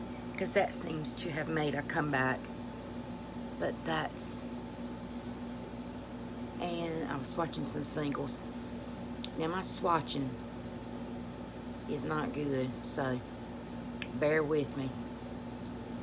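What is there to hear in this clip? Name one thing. A middle-aged woman talks calmly and close by, in short bursts.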